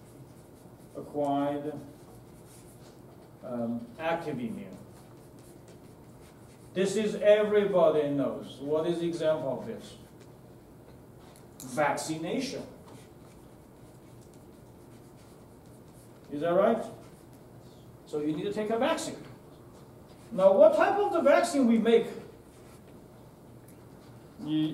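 A man speaks calmly in short bursts with long pauses, in an echoing room.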